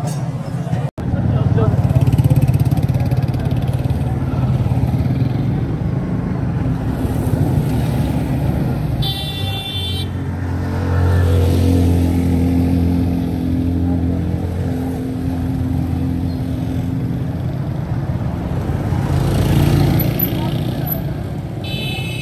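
Small motorcycles ride past on a street.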